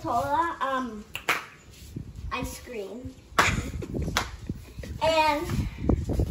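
A young girl sings nearby in a high, lively voice.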